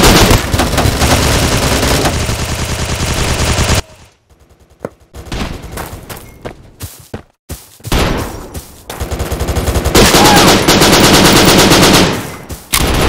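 Rapid automatic gunfire rattles loudly in bursts.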